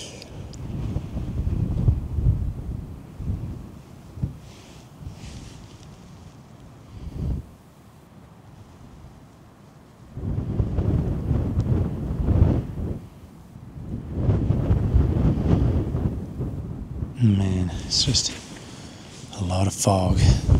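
Wind gusts and buffets outdoors on a mountainside.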